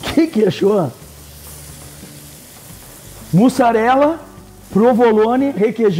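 A wooden spoon stirs and lifts thick sauce in a pan.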